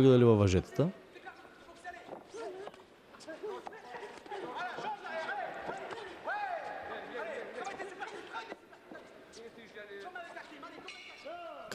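A crowd cheers and whistles in a large hall.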